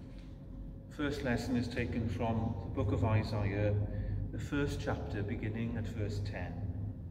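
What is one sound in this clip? An older man speaks calmly in a large echoing hall.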